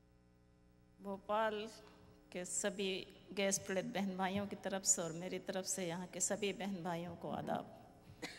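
A middle-aged woman speaks firmly into a microphone.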